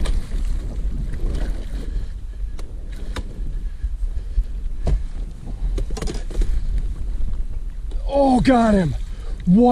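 A fish splashes and thrashes in the water.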